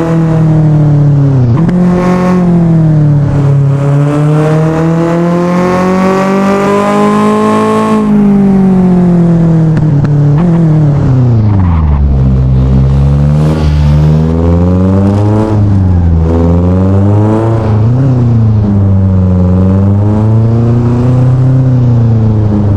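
A car engine roars loudly, climbing in pitch through the gears and then dropping as the car slows.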